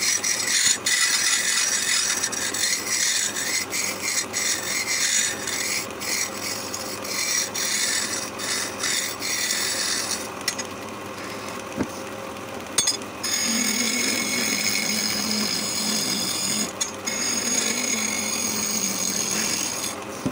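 A chisel scrapes and shaves spinning wood with a hissing rasp.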